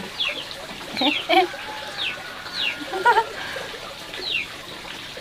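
A young woman talks to a cat nearby.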